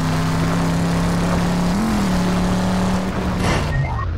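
A car engine roars steadily, then falters.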